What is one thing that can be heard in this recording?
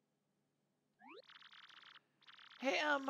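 A game character's speech plays as quick chirping blips.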